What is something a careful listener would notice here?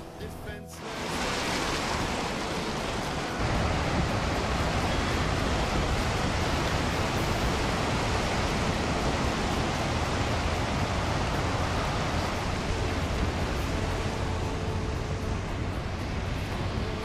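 Heavy surf crashes and roars against a rocky shore.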